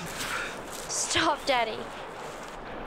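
A young girl speaks anxiously nearby.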